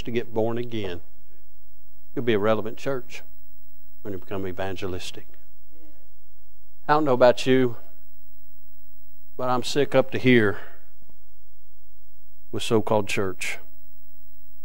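A man speaks with animation through a microphone in a large, echoing hall.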